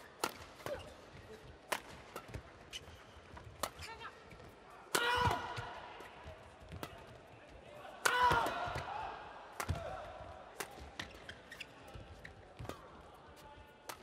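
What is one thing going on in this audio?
Rackets strike a shuttlecock in a fast rally, echoing in a large hall.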